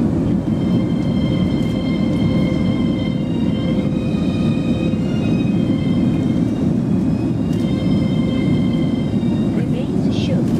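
A steady high engine whine hums over the roar.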